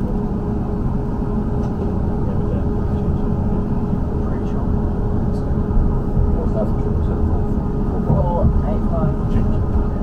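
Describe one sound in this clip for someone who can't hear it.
Train wheels click and squeal on the rails as the train picks up speed.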